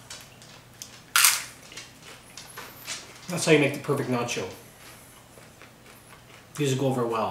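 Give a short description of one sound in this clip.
Crisp tortilla chips crunch as a man chews them.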